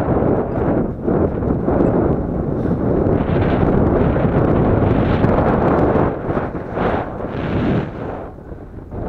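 Boots crunch through deep snow.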